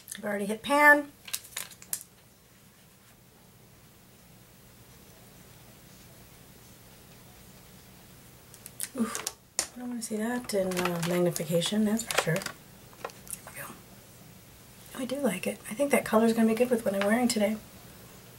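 A middle-aged woman talks calmly and close up, with pauses.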